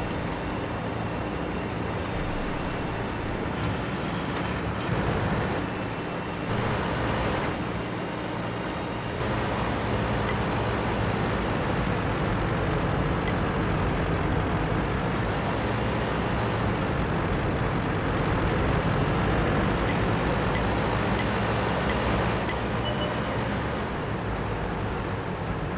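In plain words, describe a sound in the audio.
A heavy tank's engine rumbles as the tank drives.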